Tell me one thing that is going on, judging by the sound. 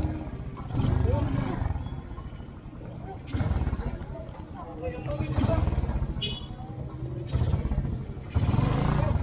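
A motorcycle engine rumbles up close, revving in short bursts.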